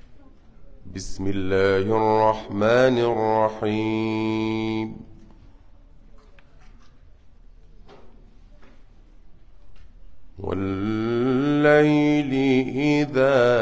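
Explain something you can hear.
A man chants in a long, melodic voice close to a microphone, pausing between phrases.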